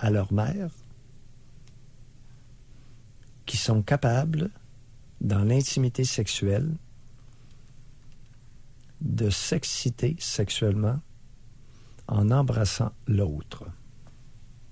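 A man speaks calmly into a microphone, in short bursts.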